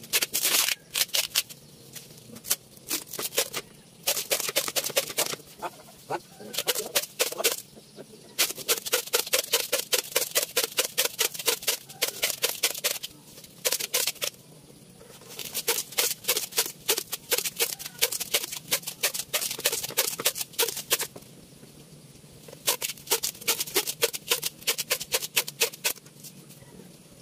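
A tool scrapes rapidly and rhythmically against wood in quick bursts.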